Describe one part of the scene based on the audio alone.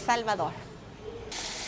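A young woman speaks brightly into a microphone.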